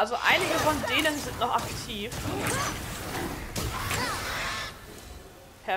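Heavy blows thud and clash in a fight.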